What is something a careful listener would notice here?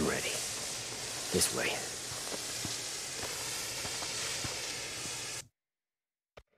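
A flare burns with a loud, steady hiss.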